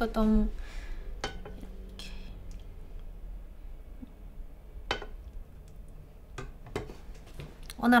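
Small knocks and clatters of handling food and utensils come close by.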